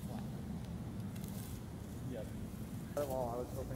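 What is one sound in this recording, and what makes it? A pole rustles against dry grass close by.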